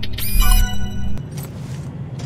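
An electronic chime sounds briefly.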